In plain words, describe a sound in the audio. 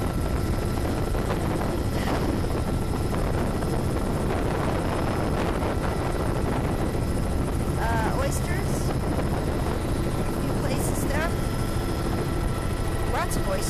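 A helicopter's engine and rotor drone steadily and loudly up close.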